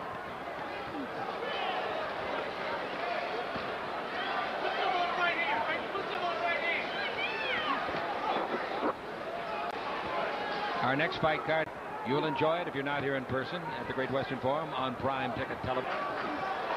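A large crowd cheers and shouts in a big hall.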